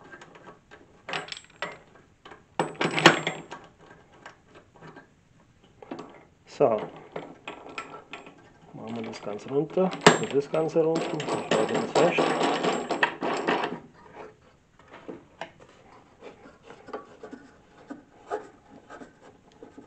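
A saw's fittings click and knock as they are adjusted.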